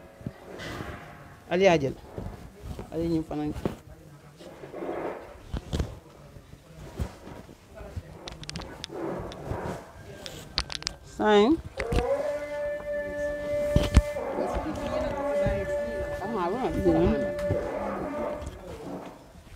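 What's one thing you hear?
Women talk quietly nearby.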